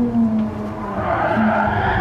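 Tyres squeal as the car turns into a corner.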